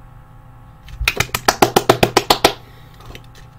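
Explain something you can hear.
A man claps his hands rapidly and loudly, close by.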